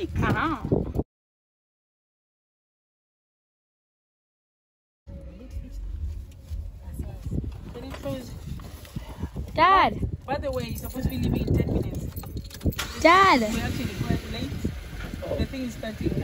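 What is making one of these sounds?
A young woman speaks excitedly nearby.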